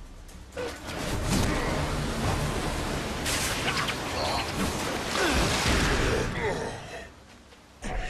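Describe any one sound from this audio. A strong gust of wind rushes and swirls.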